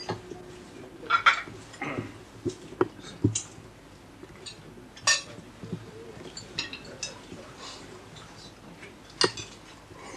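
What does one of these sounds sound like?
Several men talk and murmur close by.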